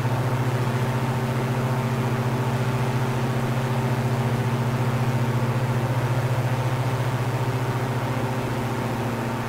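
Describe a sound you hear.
A small propeller plane's engine drones steadily and loudly.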